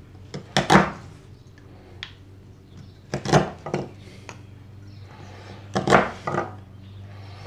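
A chisel is tapped into wood with sharp knocks.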